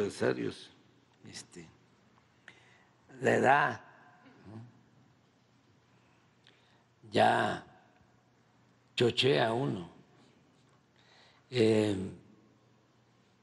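An elderly man speaks calmly into a microphone in short phrases with long pauses.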